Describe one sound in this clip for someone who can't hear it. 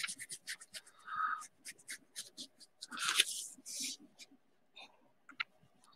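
A crayon scratches quickly across paper.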